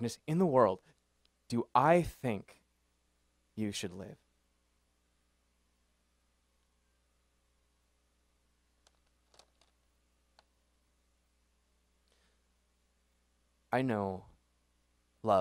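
A young man reads out through a microphone, in short bursts with long pauses.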